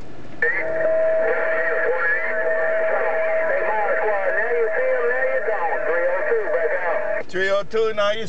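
A man talks through a radio loudspeaker.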